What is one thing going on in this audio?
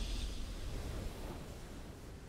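A short triumphant game fanfare swells and then fades away.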